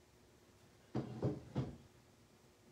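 A board is set down on a table with a soft knock.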